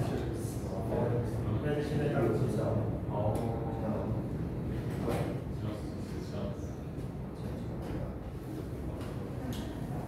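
Two men talk nearby.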